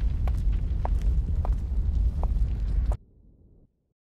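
A fire roars with a low rumble.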